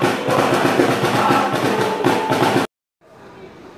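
A crowd of supporters chants and sings loudly.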